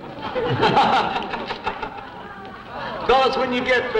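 A crowd of men and women laughs and cheers.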